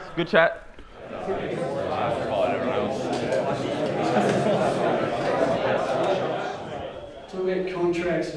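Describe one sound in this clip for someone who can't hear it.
A crowd of young men chatters in a room.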